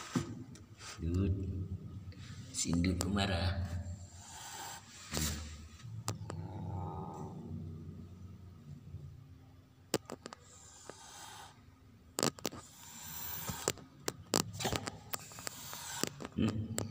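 A cat yowls angrily.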